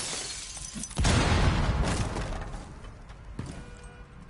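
A wall bursts apart with a loud crash.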